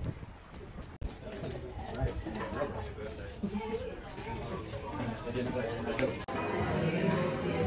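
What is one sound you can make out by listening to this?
A crowd murmurs in the background of an echoing room.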